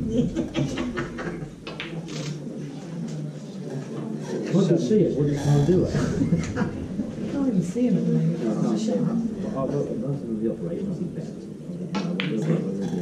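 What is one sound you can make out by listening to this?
A crowd of men murmurs and chatters quietly in a room.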